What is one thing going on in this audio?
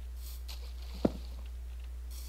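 A pickaxe chips and cracks at a block.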